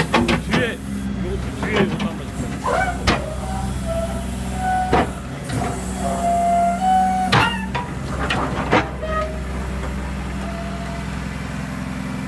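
A diesel engine idles with a steady low rumble close by.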